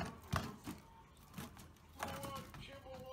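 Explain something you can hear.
A plastic ball knocks against wire cage bars.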